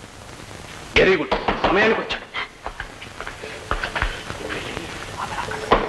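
A man cries out in distress.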